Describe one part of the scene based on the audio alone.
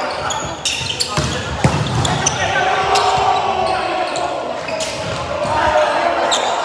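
Volleyballs thump against hands and the floor, echoing in a large hall.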